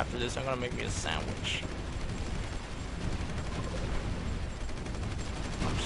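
Explosions boom and rumble in a low, steady roar.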